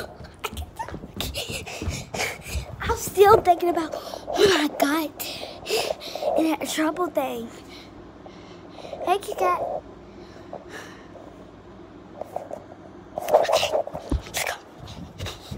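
A young child talks excitedly, close by.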